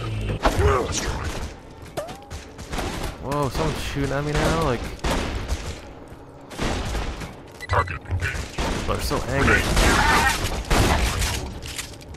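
A large robot clanks and crashes as it is destroyed.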